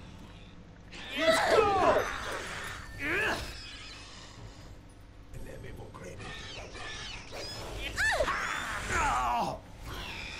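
Creatures screech and snarl in a fight.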